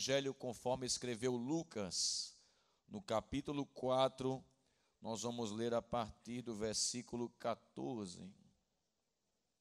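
A man speaks with feeling into a microphone, heard through loudspeakers.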